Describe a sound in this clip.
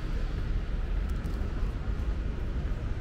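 Footsteps slap quickly on stone steps close by.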